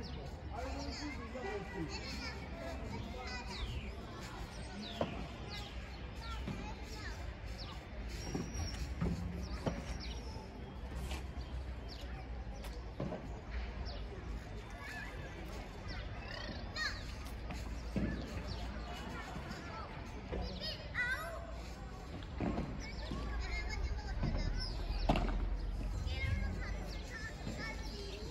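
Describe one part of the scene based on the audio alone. Padel rackets hit a ball with sharp pops, back and forth.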